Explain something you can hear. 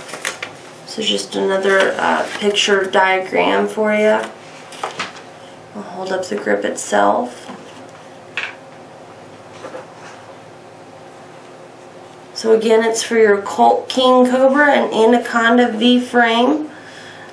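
A young woman speaks calmly and clearly into a nearby microphone.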